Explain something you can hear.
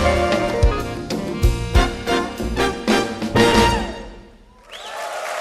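A band plays jazz with electric guitar, horns and drums.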